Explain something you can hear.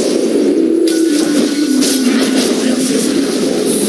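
Magic blasts and weapon strikes clash in a fight.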